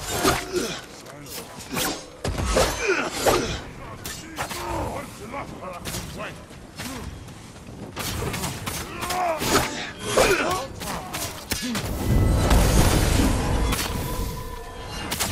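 Swords clash and slash sharply again and again.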